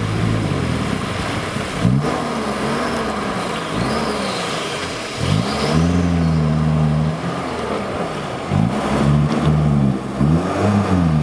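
Water splashes and sloshes around wheels driving through a deep puddle.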